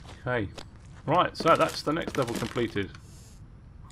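A wooden cabinet door creaks open.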